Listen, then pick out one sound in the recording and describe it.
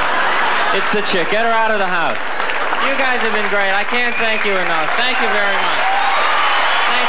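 A man speaks with animation into a microphone in a large hall.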